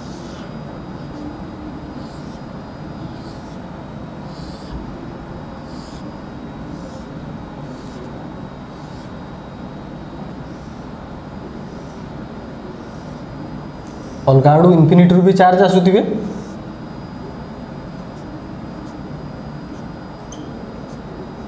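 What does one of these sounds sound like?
A marker squeaks across a whiteboard in short strokes.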